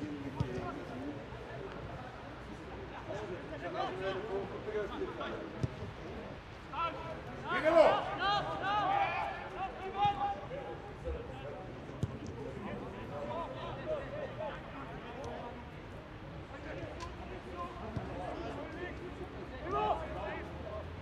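Players shout and call to each other across an open outdoor pitch.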